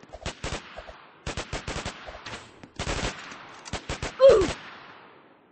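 Gunshots crack in rapid bursts, with a short echo.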